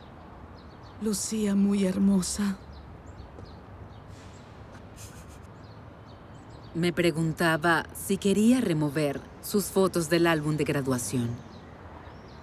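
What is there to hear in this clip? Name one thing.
An older woman speaks firmly, close by.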